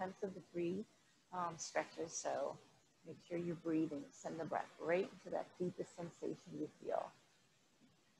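A woman speaks calmly and close to a microphone, giving instructions.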